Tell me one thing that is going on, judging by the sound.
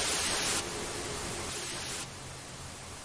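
A television hisses loudly with static.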